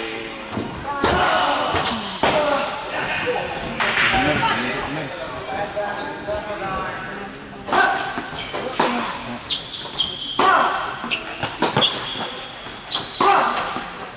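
A tennis ball is struck by a racket with sharp pops.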